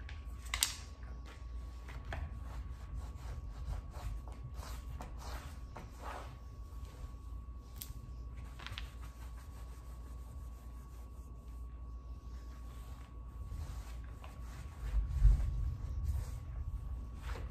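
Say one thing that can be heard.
A cloth wipes and rubs across a tile floor.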